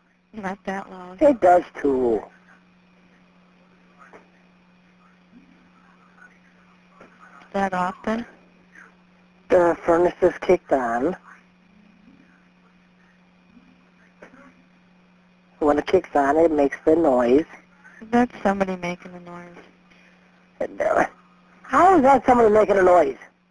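A man talks over a phone line.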